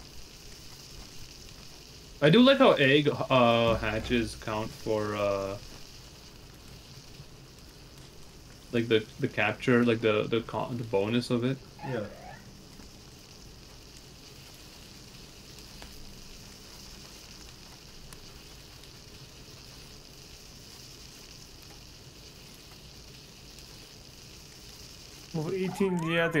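A fire crackles and hisses.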